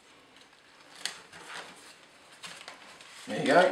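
A sheet of paper rustles as it is handled.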